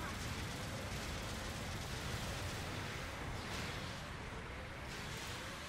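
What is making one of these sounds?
Rapid gunfire and laser blasts crackle.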